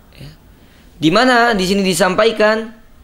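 A young man chants in a drawn-out melodic voice.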